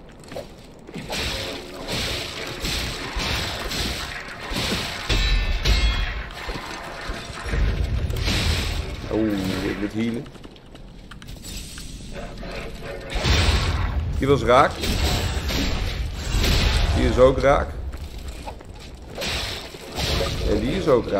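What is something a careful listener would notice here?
Blades swing and slash with heavy thuds.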